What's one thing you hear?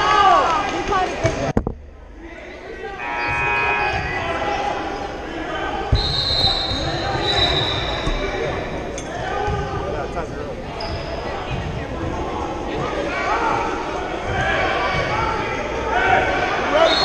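Men, women and children chatter nearby in a large echoing hall.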